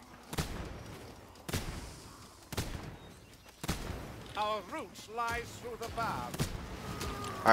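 A gun fires loud shots one after another.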